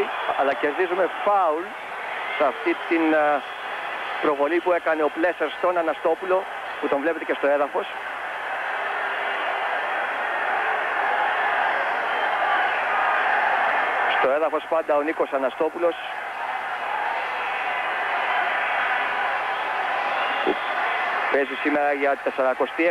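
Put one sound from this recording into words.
A large crowd murmurs and roars in a stadium.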